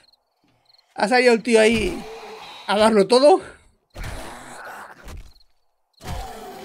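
A zombie growls and snarls up close.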